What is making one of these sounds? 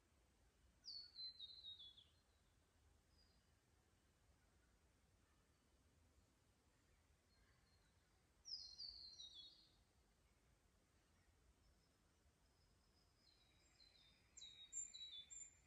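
Water trickles softly over stones in a shallow creek.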